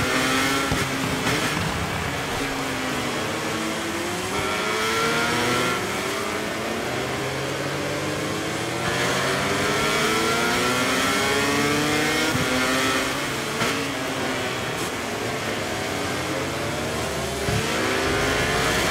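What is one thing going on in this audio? A racing motorcycle engine whines loudly, rising and falling in pitch as it shifts gears.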